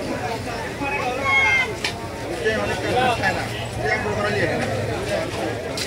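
Batter sizzles and crackles in hot oil.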